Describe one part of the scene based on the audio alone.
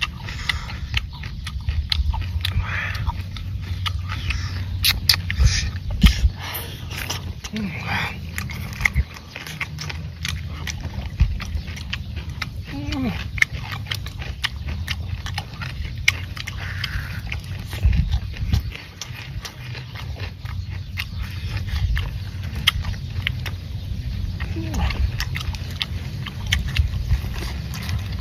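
Two young men chew and slurp food noisily close by.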